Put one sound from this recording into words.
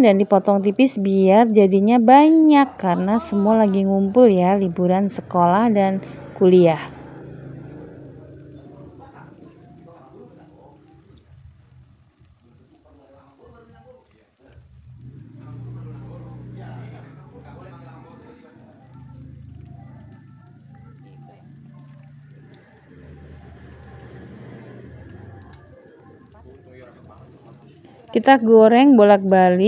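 Oil sizzles and bubbles in a frying pan.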